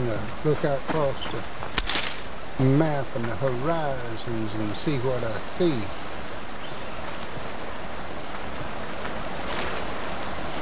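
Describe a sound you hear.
A stream of water flows and gurgles nearby.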